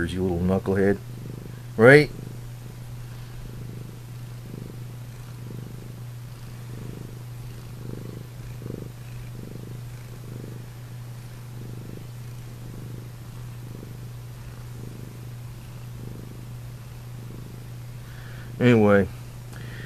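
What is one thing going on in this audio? A cat purrs softly in a steady rhythm.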